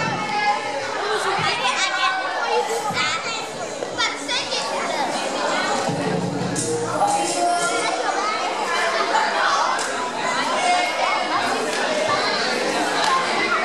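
A young woman sings into a microphone through loudspeakers in a large echoing hall.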